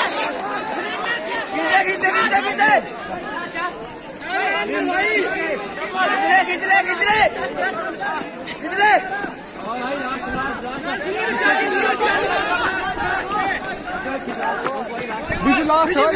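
Young men shout and cheer on runners outdoors.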